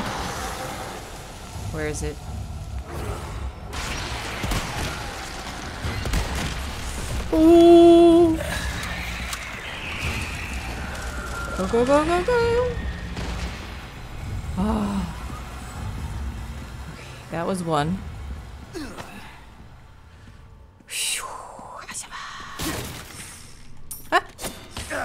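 A young woman talks with animation into a microphone.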